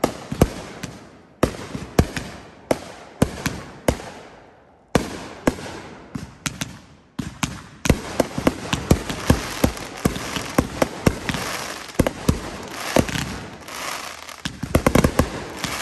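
Fireworks bang and crackle outdoors, loud and close, in rapid bursts.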